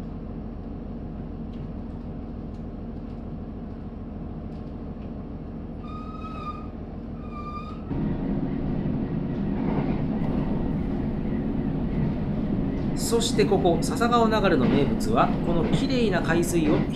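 A train rumbles steadily along the tracks, growing louder as it picks up speed.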